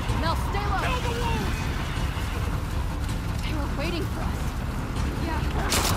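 A young woman shouts briefly.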